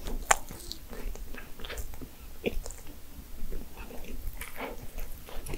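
A young woman chews food wetly and smacks her lips close to a microphone.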